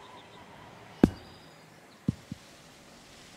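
A golf ball lands with a thud and bounces on grass.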